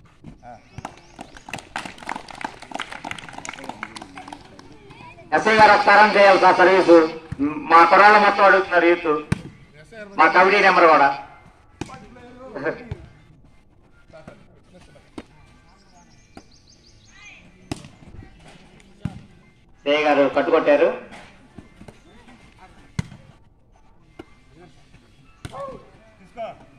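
A volleyball is struck with hands outdoors.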